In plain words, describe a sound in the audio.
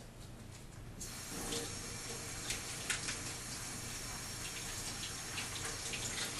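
Tap water runs into a metal sink.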